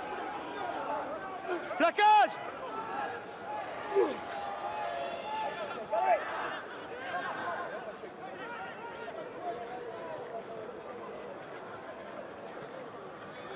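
A crowd murmurs and cheers in a large stadium.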